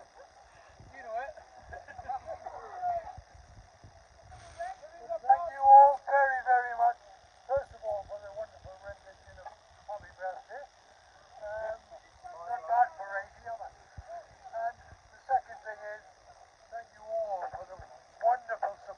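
An elderly man makes a speech through a megaphone outdoors, his voice loud and slightly tinny.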